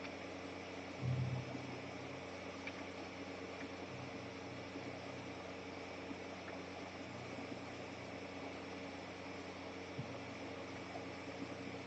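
Soft, low synthesizer music plays steadily.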